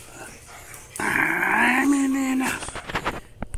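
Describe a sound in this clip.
A dog whines and yelps.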